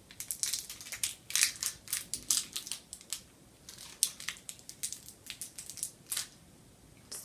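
Candy crunches and crackles as a young woman chews.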